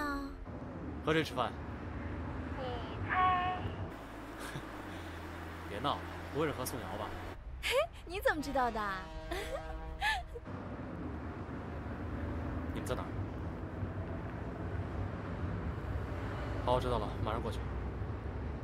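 A young man talks on a phone.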